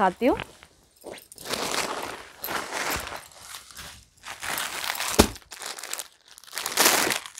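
Cloth and plastic packets rustle and crinkle as they are handled.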